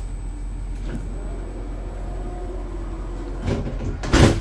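A door warning chime beeps.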